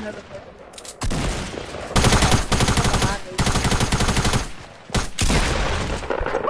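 Shotgun blasts fire rapidly at close range.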